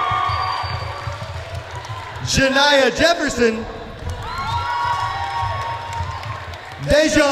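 A crowd of teenagers claps hands in a large echoing hall.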